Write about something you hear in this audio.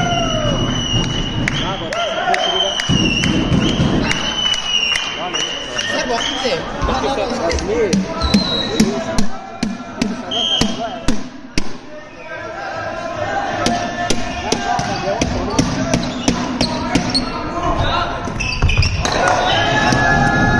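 A volleyball is struck with loud slaps.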